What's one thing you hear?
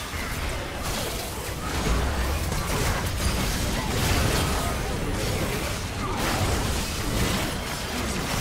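Spell effects crackle and burst in a fast-paced fight.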